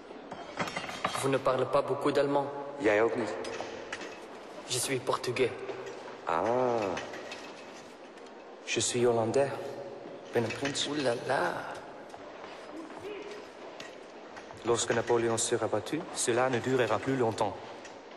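A second young man answers with animation, close by.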